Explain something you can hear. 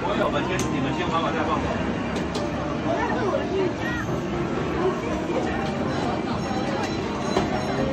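An arcade game plays loud music and sound effects.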